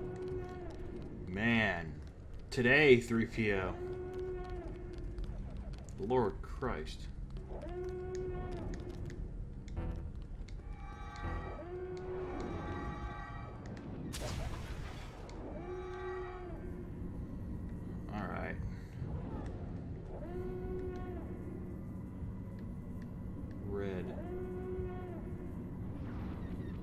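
A lightsaber hums and swooshes as it swings.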